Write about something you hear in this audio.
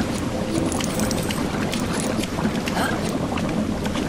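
Water splashes as a small figure wades through it.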